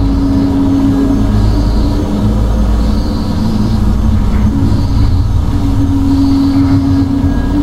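Heavy boots thud steadily on a metal floor.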